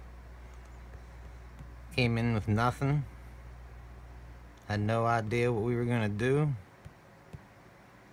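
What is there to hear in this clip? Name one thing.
Fingers tap lightly on a touchscreen.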